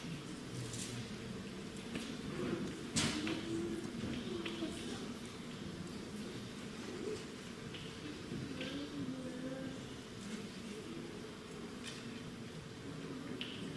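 A girl speaks into a microphone, reciting with expression, heard through loudspeakers in a large echoing hall.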